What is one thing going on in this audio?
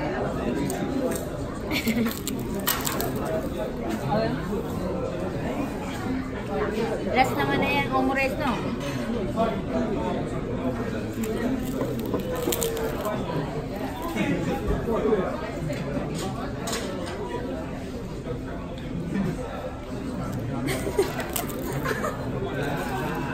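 Young women talk and laugh together close by.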